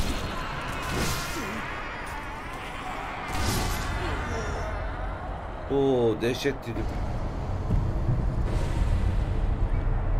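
Swords clash and whoosh in a fight.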